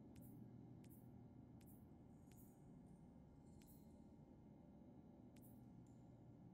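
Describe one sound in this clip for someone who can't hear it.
Game menu clicks tick quickly one after another.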